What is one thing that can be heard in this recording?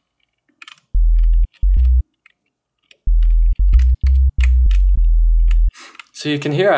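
Deep electronic bass notes play in short bursts.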